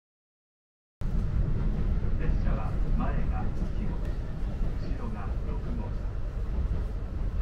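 A train rumbles steadily along, heard from inside.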